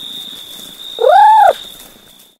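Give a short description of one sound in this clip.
A cat gives a short meow that rises and falls.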